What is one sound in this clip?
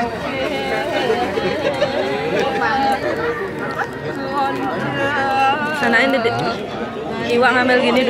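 Men and women chatter close by in a small crowd.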